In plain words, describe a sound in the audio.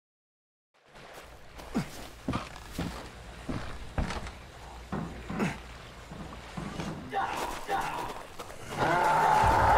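Footsteps thud along a dirt path.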